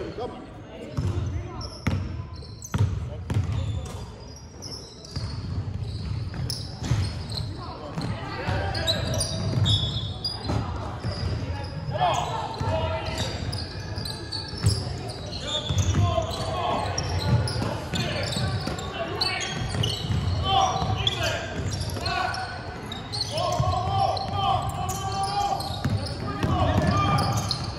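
A basketball bounces on a hardwood court in a large echoing hall.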